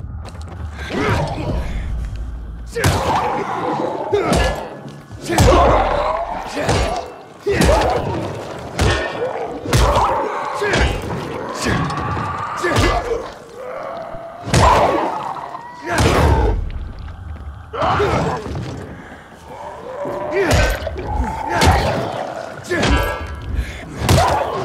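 Creatures snarl and groan.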